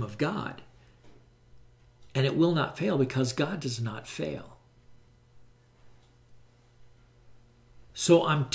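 An elderly man speaks calmly and closely into a microphone, in short bursts with pauses.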